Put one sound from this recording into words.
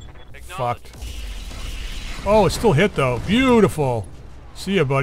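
Weapon blasts crackle and boom.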